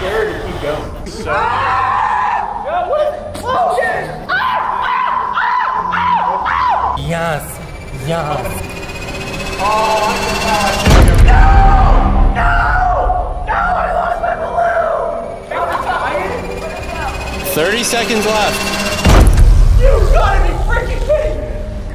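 Young men shout and laugh excitedly nearby.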